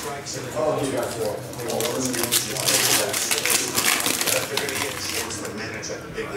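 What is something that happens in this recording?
A foil pack rustles and tears open.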